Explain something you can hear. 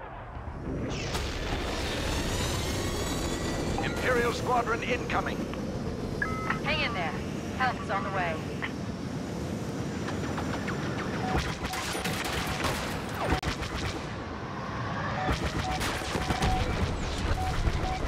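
A starfighter's engines roar in flight.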